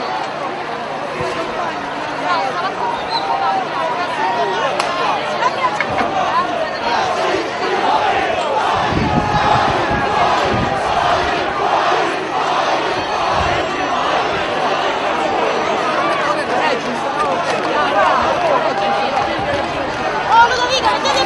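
A large crowd shouts and chants outdoors, close by.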